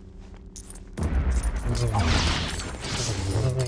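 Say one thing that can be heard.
Objects smash apart with a loud burst and clattering debris.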